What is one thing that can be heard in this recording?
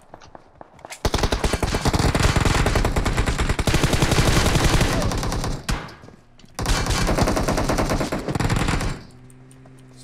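Rapid automatic gunfire rattles loudly in bursts.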